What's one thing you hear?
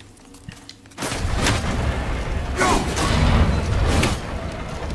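Heavy blows crash and rumble with echoing impacts.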